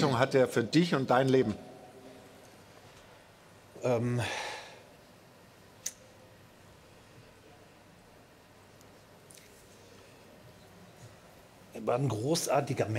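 A middle-aged man speaks calmly into a microphone, in short bursts.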